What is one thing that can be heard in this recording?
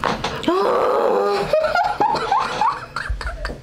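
A young woman groans loudly and cries out close by.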